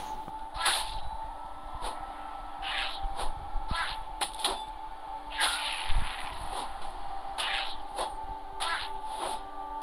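A weapon strikes a creature with sharp hits.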